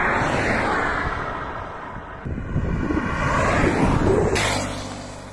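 A car passes by on an asphalt road.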